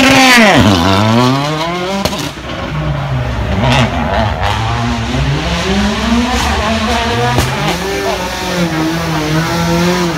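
A rally car speeds away, its engine revving up and down as it fades into the distance.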